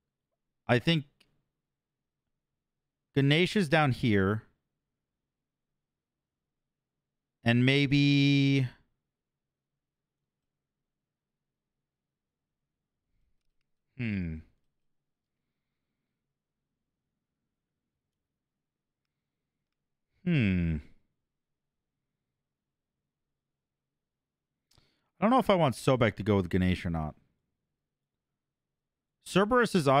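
A young man talks casually into a close microphone, in short bursts with pauses.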